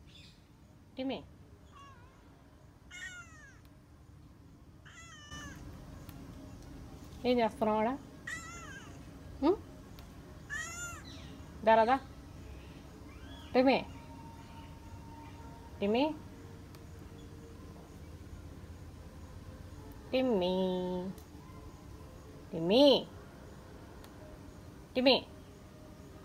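A cat meows repeatedly up close.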